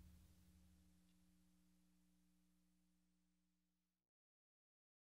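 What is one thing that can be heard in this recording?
Drums and cymbals ring out and slowly fade away.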